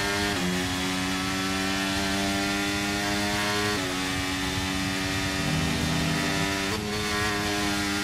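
A racing car engine whines at high revs, with sudden pitch drops at gear changes.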